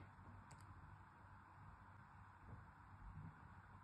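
Fingers snap a small piece of plastic.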